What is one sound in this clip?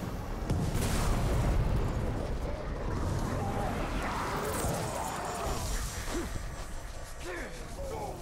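A burst of fire roars and crackles.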